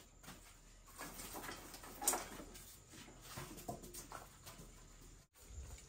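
Metal tools clink and scrape against the ground.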